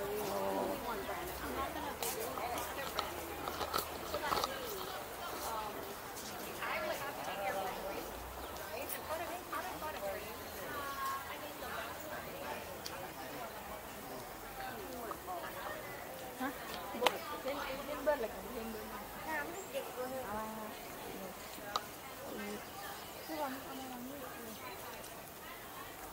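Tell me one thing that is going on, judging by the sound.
A man talks close by outdoors.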